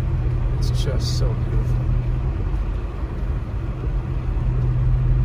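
Wind blows snow against the car in a steady rush.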